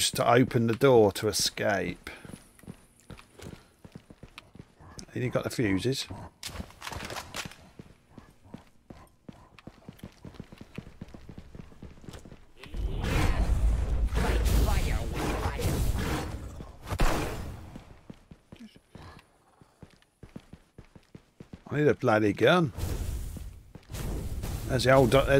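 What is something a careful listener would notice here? An elderly man talks with animation into a microphone.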